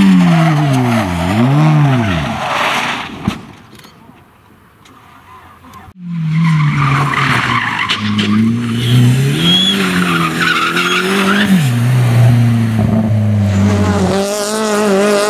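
A rally car engine roars and revs up and down as the car speeds past.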